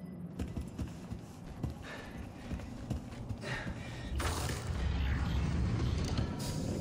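Heavy boots thud slowly on a metal floor.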